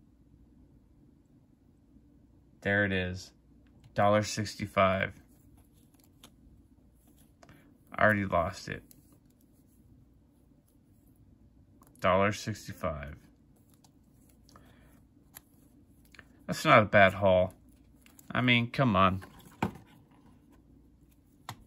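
Stiff trading cards slide and rustle against each other in hands.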